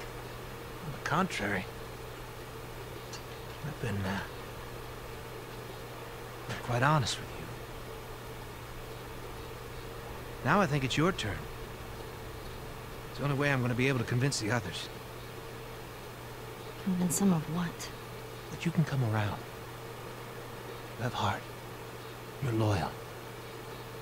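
A man speaks slowly and calmly, close by.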